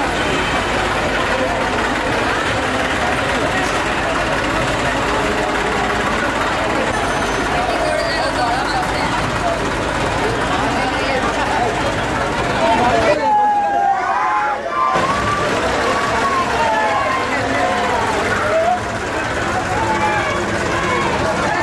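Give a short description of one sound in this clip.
A large crowd of men and women chatters and shouts outdoors.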